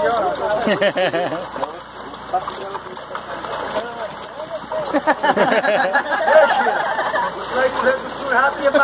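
Fish thrash and splash in the water.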